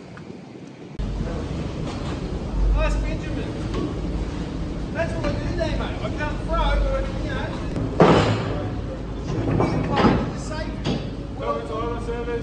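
A ferry engine rumbles low and steady.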